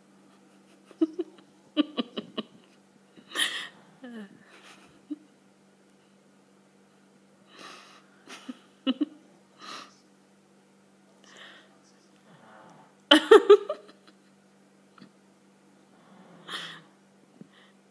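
A small dog snorts and grunts in short bursts.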